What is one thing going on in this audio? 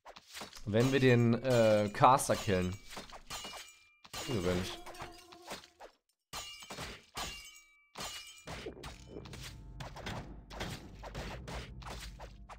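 Electric magic crackles and zaps.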